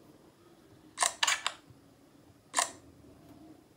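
A mobile game plays short whooshing effects.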